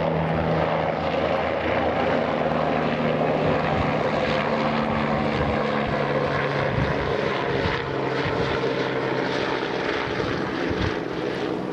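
A diesel locomotive engine rumbles steadily as a freight train approaches.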